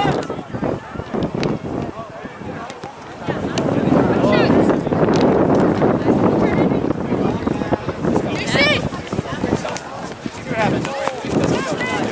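Young players call out to each other across the field.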